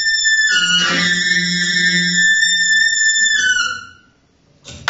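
A bass clarinet plays sustained notes up close.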